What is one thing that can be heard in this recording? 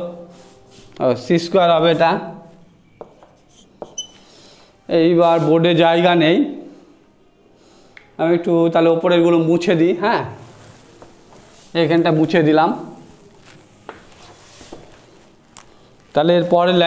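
A man speaks calmly through a close microphone, explaining in bursts.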